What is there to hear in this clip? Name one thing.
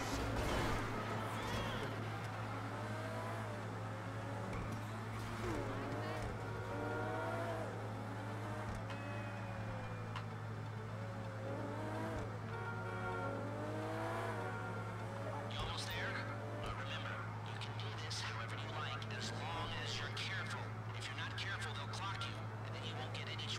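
A sports car engine roars and revs up and down as it speeds along.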